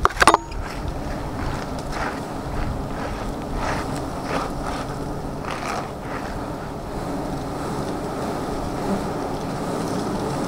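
A dense swarm of bees buzzes steadily up close.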